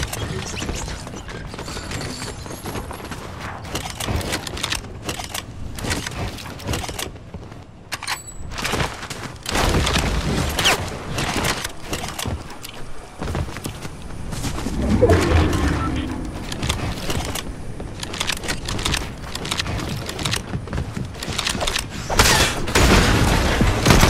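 Footsteps patter quickly on hard ground and grass.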